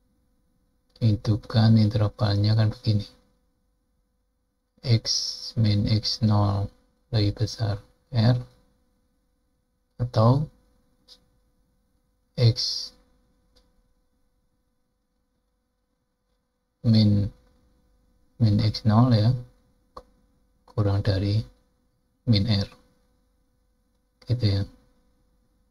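An older man speaks calmly into a close microphone, in short phrases with pauses.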